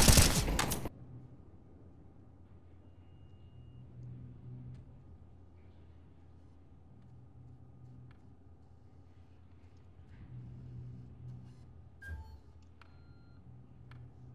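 Footsteps thud softly on hard stairs and floor.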